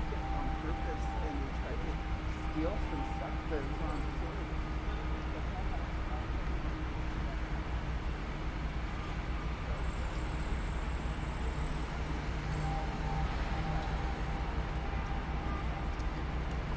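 Street traffic rumbles steadily nearby.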